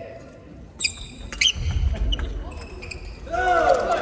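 Sneakers squeak sharply on a hall floor.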